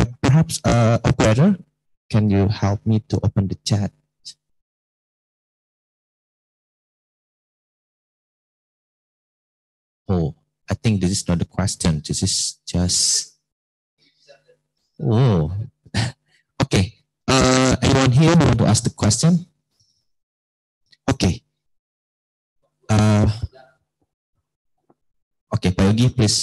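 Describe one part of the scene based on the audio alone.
A man speaks through a microphone with animation, pausing now and then.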